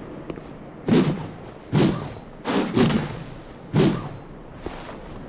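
A large blade swishes through the air in quick swings.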